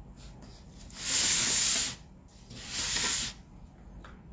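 Paper tears in short noisy bursts.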